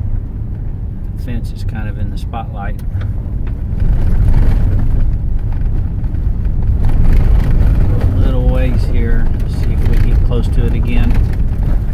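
Tyres roll and crunch over a dirt road.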